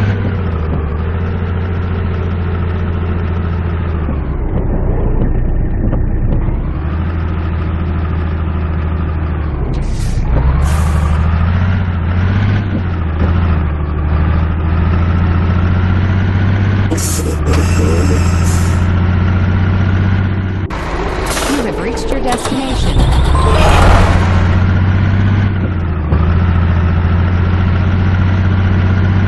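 A heavy truck engine rumbles steadily, rising and falling as it drives.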